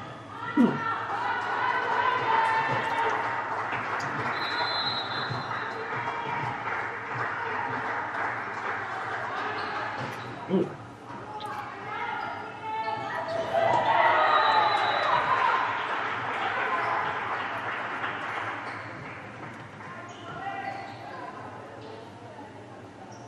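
Young women shout and call out to each other in an echoing hall.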